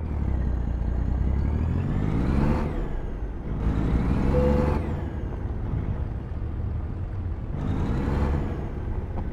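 A truck engine rumbles low and steadily, revving up and easing off in bursts.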